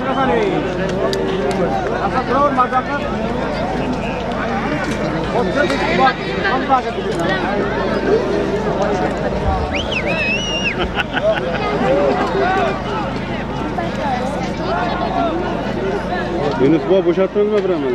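A crowd of men shouts and chatters outdoors.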